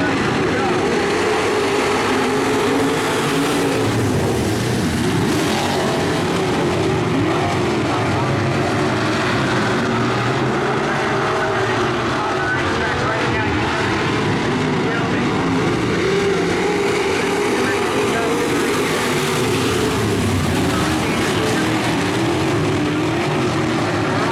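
Race car engines roar loudly.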